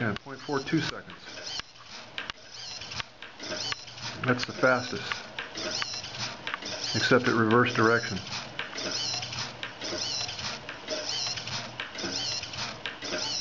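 A small servo motor whirs in short, repeated bursts.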